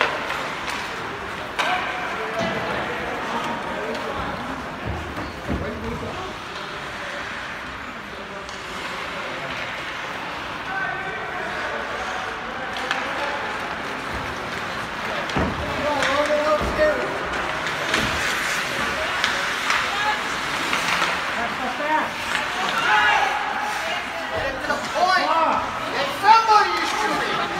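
Spectators chatter and call out, echoing in a large hall.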